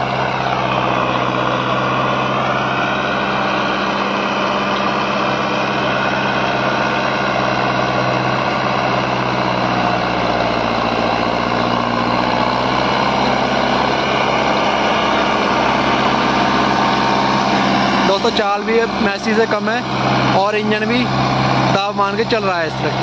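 A disc harrow churns through soil.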